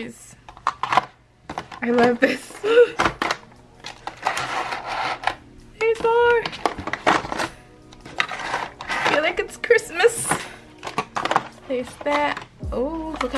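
Paint tubes click and rattle against plastic trays as they are handled.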